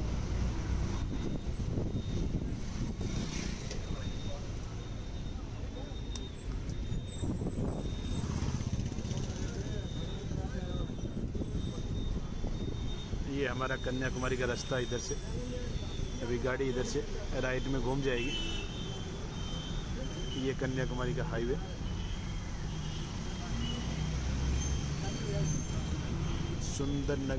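Wind rushes past an open bus window.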